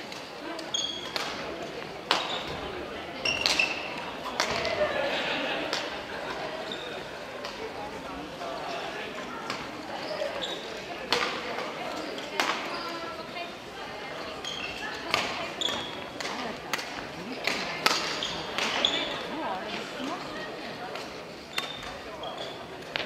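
Badminton rackets smack shuttlecocks again and again.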